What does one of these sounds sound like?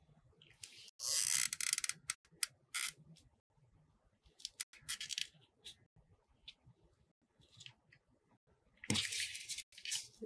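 Fingers rustle and tap craft pieces on a tabletop, close by.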